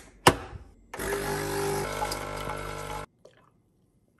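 A coffee machine hums and whirs as it brews.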